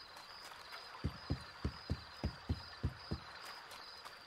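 Footsteps thud on the ground.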